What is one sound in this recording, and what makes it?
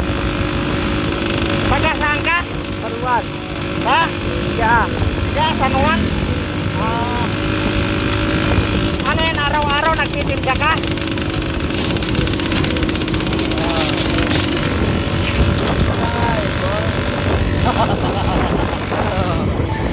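A motorcycle engine rumbles steadily while riding along a street.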